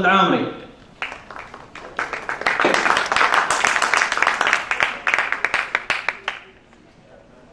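A man claps his hands in applause.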